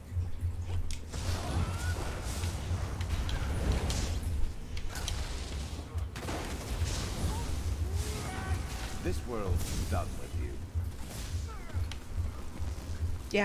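Electric bolts crackle and zap in rapid bursts.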